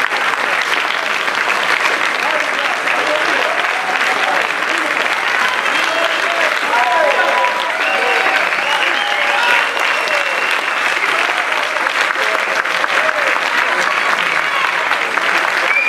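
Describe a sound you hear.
A large audience applauds loudly and steadily in an echoing hall.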